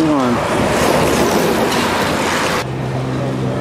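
Recumbent tricycles whir past close by on asphalt.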